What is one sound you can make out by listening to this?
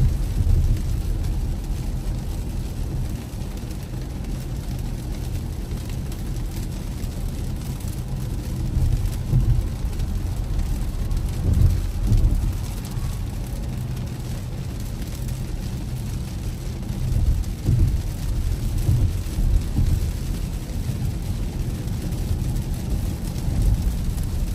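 A car's tyres hiss steadily on a wet road.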